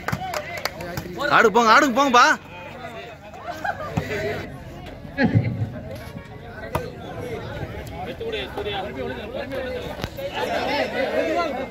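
A volleyball is struck by hand with a thump.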